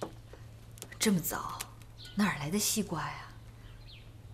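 A young woman asks a question in a surprised voice.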